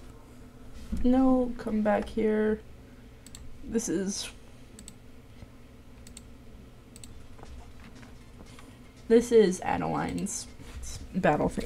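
A young woman speaks casually into a microphone, in short bursts.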